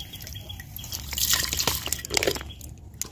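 Liquid pours from a bottle into a pot.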